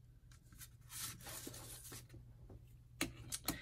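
Paper rustles and crinkles softly as it is handled.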